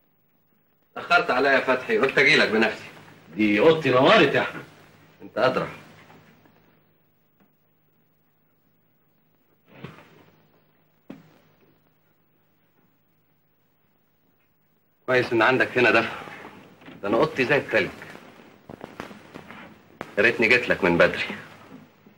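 A man speaks calmly nearby, heard in a quiet room.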